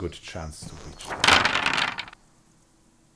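Dice rattle and tumble across a board.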